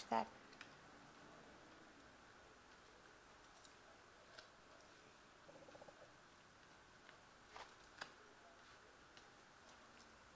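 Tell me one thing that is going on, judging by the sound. Metal bracelets clink faintly on a wrist.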